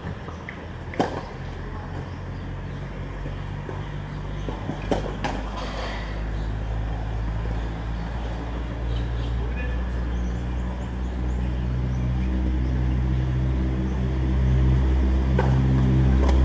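A tennis ball is struck with a racket in sharp pops.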